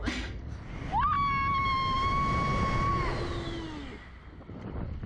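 A young woman screams loudly, with a high sustained voice.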